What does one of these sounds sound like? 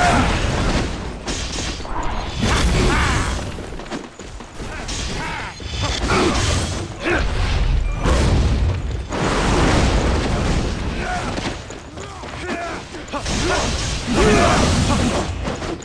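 Fiery spell blasts whoosh and crackle in a game battle.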